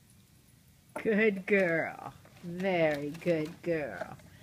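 A small dog whines and howls.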